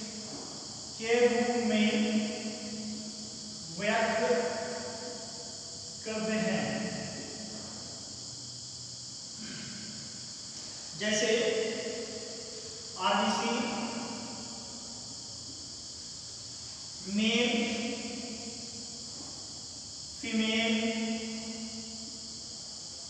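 A man speaks in short bursts with pauses, in a room that echoes a little.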